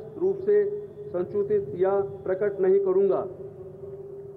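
An elderly man speaks slowly and formally into a microphone over loudspeakers.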